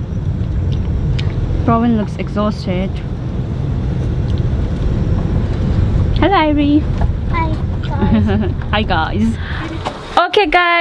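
A car engine rumbles low and steady from inside the cabin.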